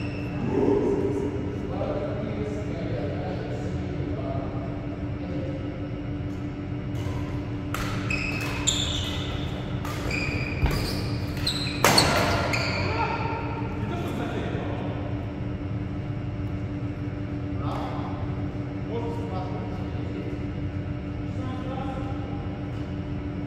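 Young men talk casually across the hall.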